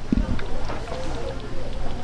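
Hot oil sizzles in a fryer.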